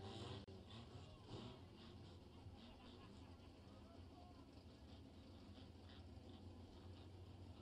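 A crowd of people chatters.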